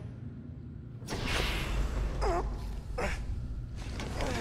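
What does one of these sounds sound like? A heavy metal door slides open with a hiss.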